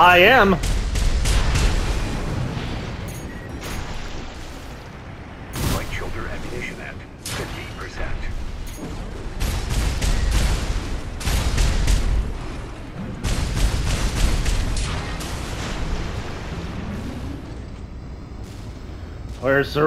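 Gunfire bursts rapidly in quick volleys.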